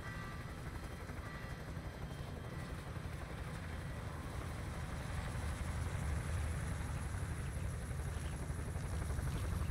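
Wind rushes loudly through an open helicopter door.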